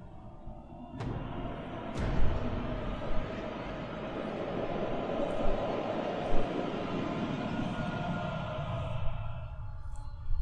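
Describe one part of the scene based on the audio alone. A fire roars and rumbles steadily.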